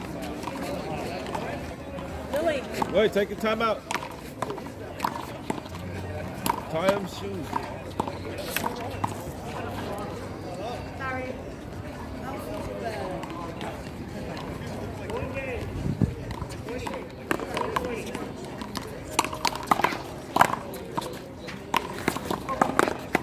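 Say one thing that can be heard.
Paddles hit a ball with sharp claps.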